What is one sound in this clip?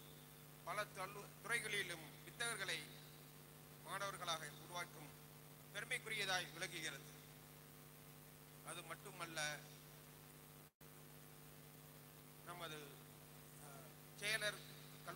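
A man speaks calmly into a microphone over a loudspeaker, in pauses.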